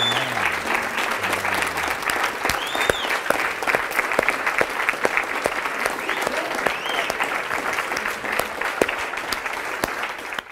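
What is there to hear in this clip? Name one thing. An audience claps and cheers in a large room.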